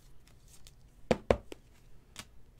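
Cardboard packaging tears open with a sharp rip.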